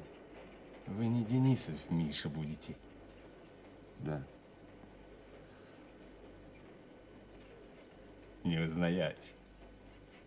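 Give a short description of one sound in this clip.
A middle-aged man speaks quietly in short phrases nearby.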